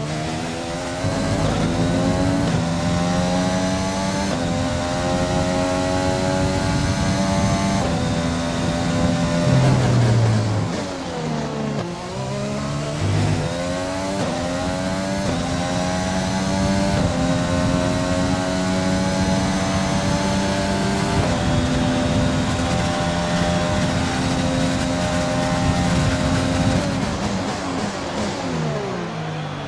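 A racing car engine screams at high revs, shifting up through the gears and dropping in pitch under braking.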